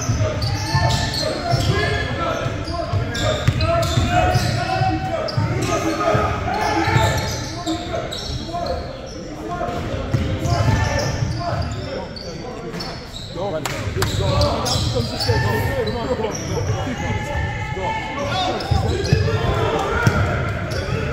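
Sneakers squeak on a hard court in a large echoing gym.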